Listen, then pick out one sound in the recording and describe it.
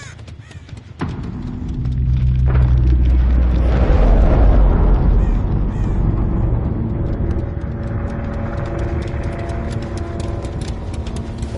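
A chainsaw engine rumbles and revs up close.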